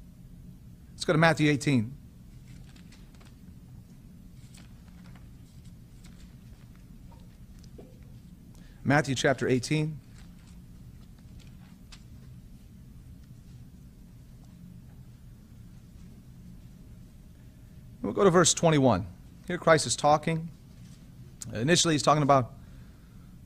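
A man speaks slowly into a microphone in short bursts with long pauses.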